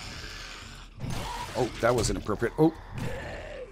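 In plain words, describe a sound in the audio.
A club strikes flesh with heavy, wet thuds.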